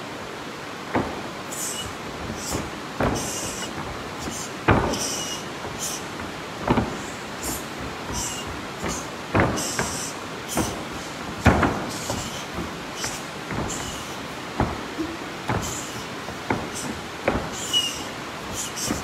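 Feet thud and stamp on a hard floor in a large echoing hall.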